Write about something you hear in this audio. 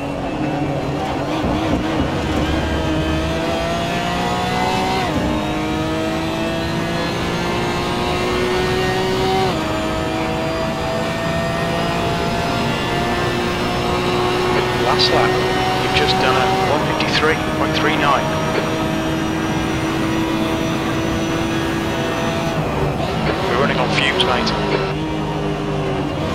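A racing car engine roars and climbs in pitch, dropping briefly at each gear change.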